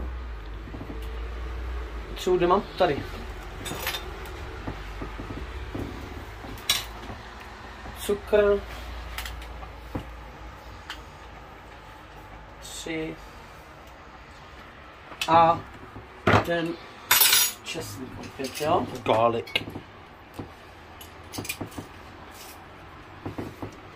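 A spoon clinks against a pan.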